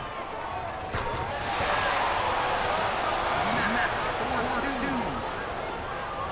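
A large crowd cheers loudly and then dies down.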